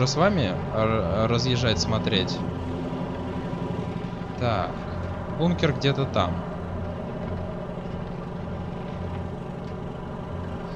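A vehicle engine rumbles steadily as it drives along.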